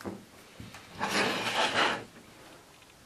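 Hands rub and knock against a plastic beacon dome.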